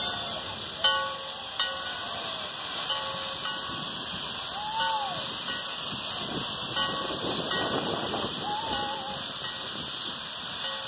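Steam hisses steadily from a locomotive.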